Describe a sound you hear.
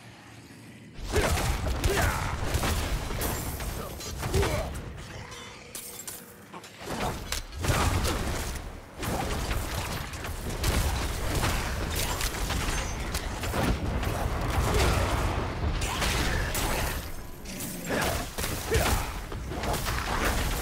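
Fiery blasts and impacts crash loudly in quick succession.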